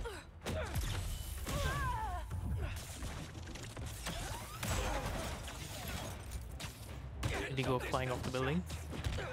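Punches and kicks land with heavy thuds during a fight.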